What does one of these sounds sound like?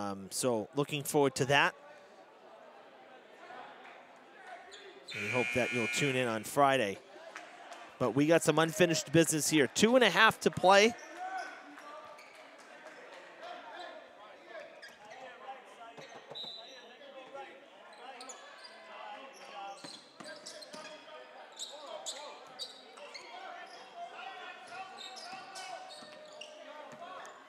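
A crowd of people chatters in a large echoing gym.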